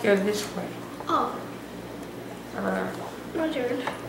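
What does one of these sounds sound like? A young boy talks close by.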